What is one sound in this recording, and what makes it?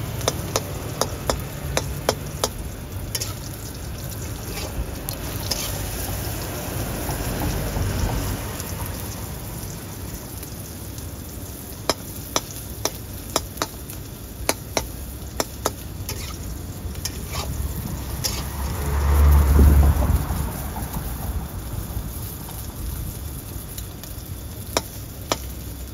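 An omelette sizzles in hot oil in a wok.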